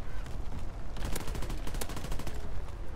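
A heavy machine gun fires a quick burst.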